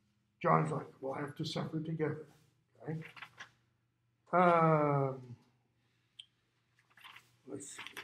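Paper pages rustle as they are handled.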